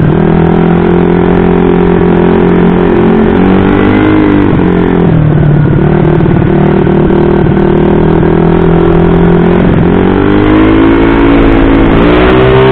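A bored-up single-cylinder scooter engine drones, its revs rising and falling as it rides through traffic.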